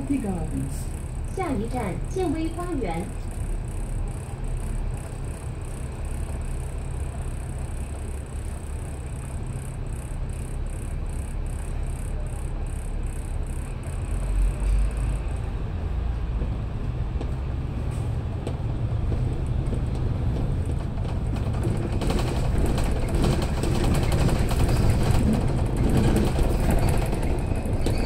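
A bus engine rumbles steadily from inside, growing louder as the bus pulls away and picks up speed.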